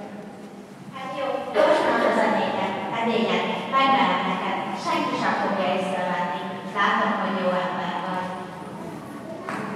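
A young woman sings into a microphone, heard through loudspeakers in an echoing hall.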